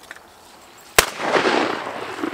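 A shotgun fires with a loud bang that echoes outdoors.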